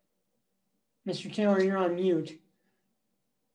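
A middle-aged man speaks briefly and calmly into a computer microphone.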